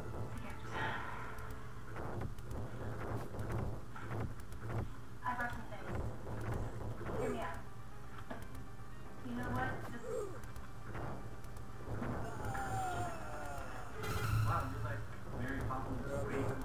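Fireballs whoosh and explode in a video game.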